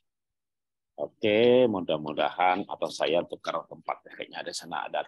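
A middle-aged man speaks with animation over an online call.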